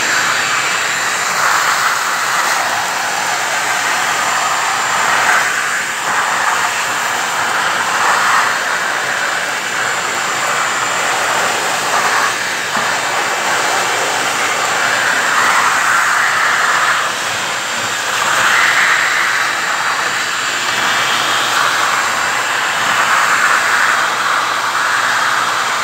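A vacuum hose roars steadily as it sucks up dust and grit.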